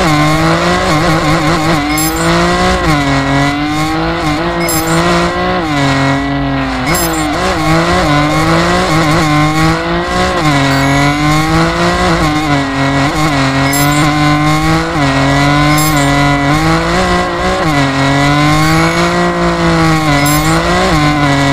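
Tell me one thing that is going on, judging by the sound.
Tyres screech while drifting.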